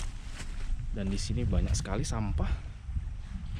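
A man speaks briefly, close to the microphone.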